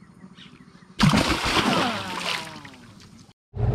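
A fish splashes and thrashes loudly in water close by.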